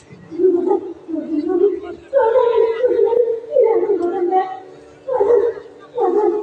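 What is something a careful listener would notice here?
A man sings in long, drawn-out phrases through a loudspeaker.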